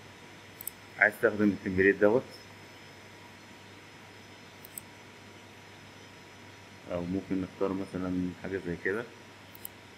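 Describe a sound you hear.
A man speaks calmly into a microphone, close by.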